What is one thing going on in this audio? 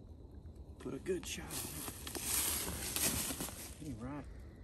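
Dry leaves rustle and crunch as a deer is dragged over the ground.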